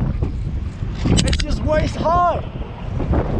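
A man calls out excitedly close by.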